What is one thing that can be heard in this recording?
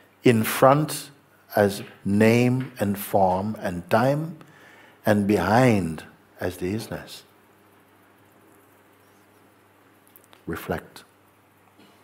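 An elderly man speaks calmly and expressively close to a microphone.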